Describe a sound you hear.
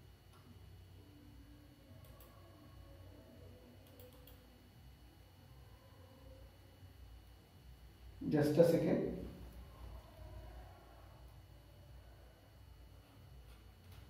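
A man speaks calmly, lecturing.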